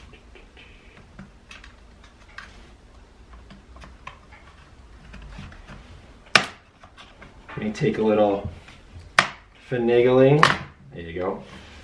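Plastic clips click and snap as a casing is pried apart.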